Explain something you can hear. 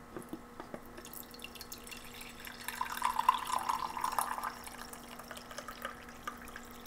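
Coffee pours from a glass press into a mug with a steady trickle.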